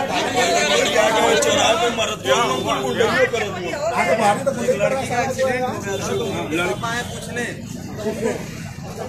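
A man argues loudly up close.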